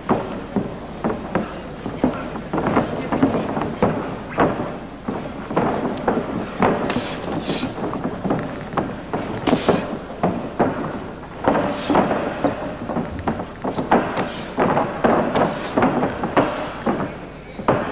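A large crowd shouts and cheers in an echoing arena.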